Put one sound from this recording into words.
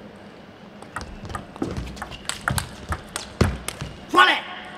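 A table tennis ball clicks back and forth between bats and the table in a quick rally.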